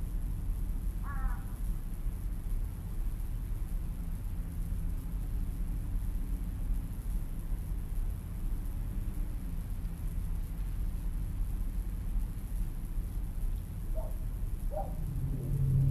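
Birds call briefly in the distance.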